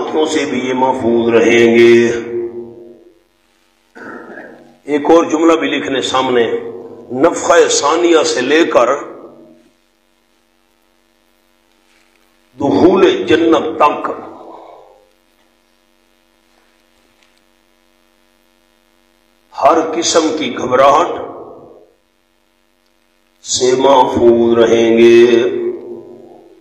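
A man speaks in phrases into a microphone, with pauses between them.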